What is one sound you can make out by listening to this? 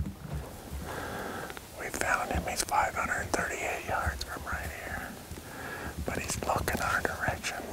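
A middle-aged man speaks quietly and closely into a microphone.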